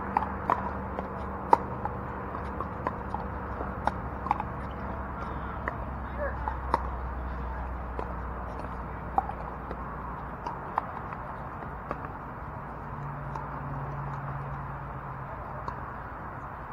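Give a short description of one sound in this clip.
Paddles pop sharply against a plastic ball.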